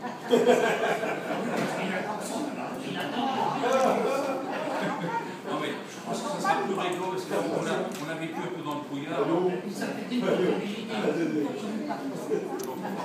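An elderly man speaks steadily to a group in a room with a slight echo.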